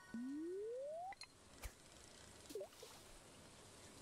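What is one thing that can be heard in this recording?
A fishing line is cast out into water.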